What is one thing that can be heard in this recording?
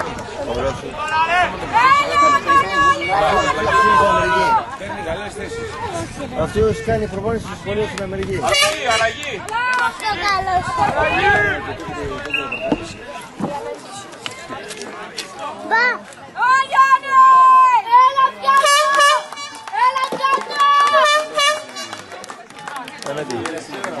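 Children shout and call out to each other outdoors during a football game.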